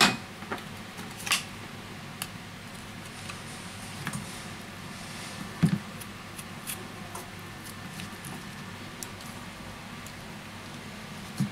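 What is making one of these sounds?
Small plastic parts click and tap against a phone.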